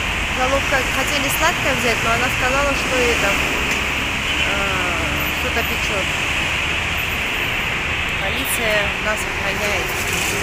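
A middle-aged woman speaks calmly and close up.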